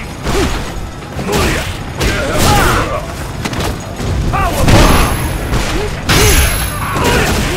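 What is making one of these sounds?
Punches and kicks land with heavy, thudding impacts.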